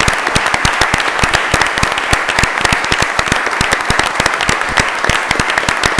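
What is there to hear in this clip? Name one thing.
A crowd applauds steadily in a room.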